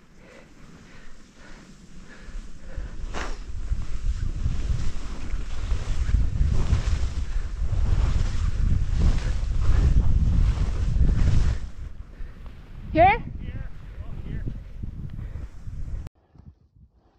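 Skis hiss and scrape over snow close by.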